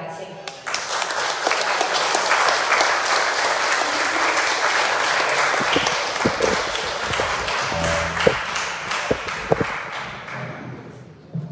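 A group of people applauds in a room.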